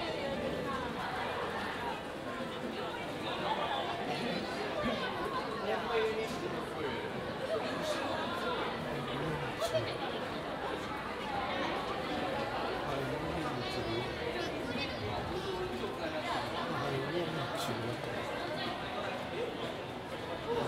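Footsteps of many people shuffle on a hard floor.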